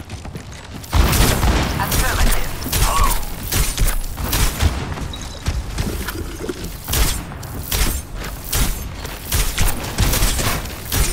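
A game's energy gun fires in rapid bursts.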